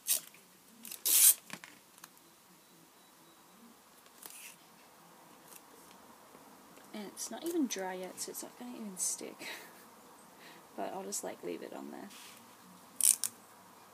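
Paper pages rustle as they are leafed through by hand.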